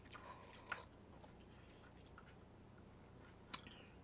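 A young woman sips a drink.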